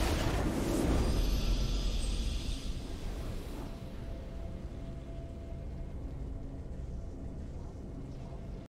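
A triumphant game fanfare swells.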